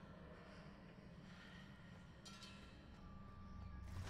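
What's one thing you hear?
Footsteps hurry across a stone floor.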